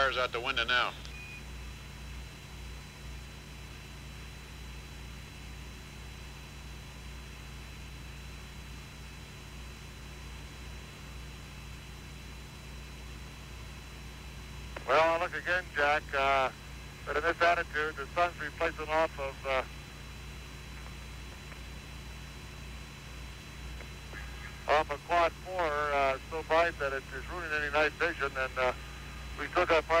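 A small propeller plane's engine drones steadily.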